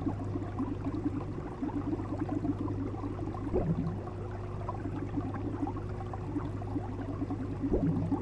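Water in an aquarium burbles and swishes steadily.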